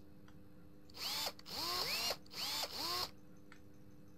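An impact wrench whirs in short bursts.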